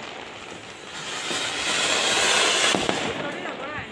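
A firework fountain sprays sparks with a loud rushing hiss.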